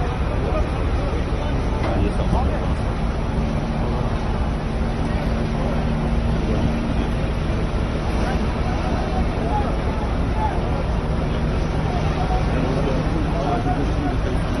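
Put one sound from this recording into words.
A crowd of men talk and call out outdoors.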